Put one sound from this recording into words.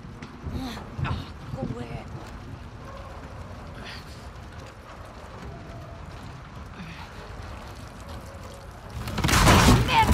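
A wheeled cart rolls and rattles over a wooden floor.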